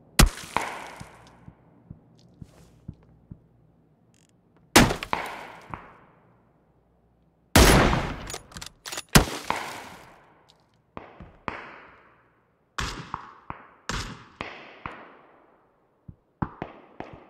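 Rifle shots crack loudly, one at a time, each echoing away.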